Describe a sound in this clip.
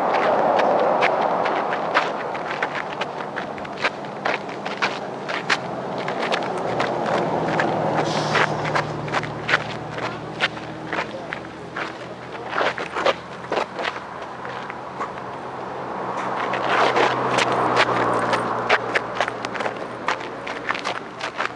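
Wind blows hard outdoors.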